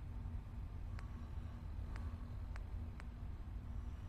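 Short electronic ticks sound as a menu selection moves.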